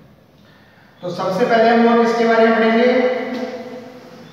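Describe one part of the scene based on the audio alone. A young man speaks loudly and clearly, close by, as if addressing a class.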